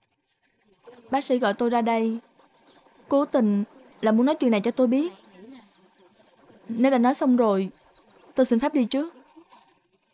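A young woman speaks firmly and earnestly.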